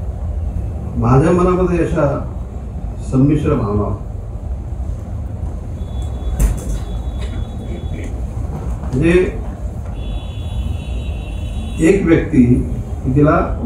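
A middle-aged man speaks slowly and calmly into a microphone over loudspeakers, in an echoing hall.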